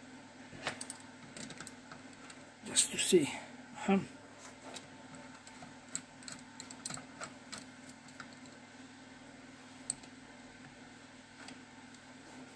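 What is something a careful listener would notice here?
A metal tool clicks and taps against a metal casing.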